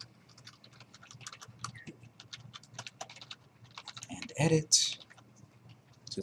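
Keyboard keys click quickly and unevenly as someone types.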